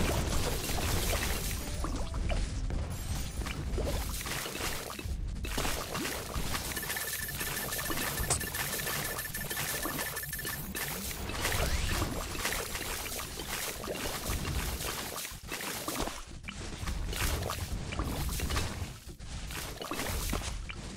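Cartoonish popping sounds crackle rapidly and without pause.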